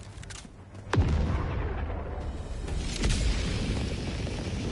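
A drop pod roars loudly as it plunges down from the sky.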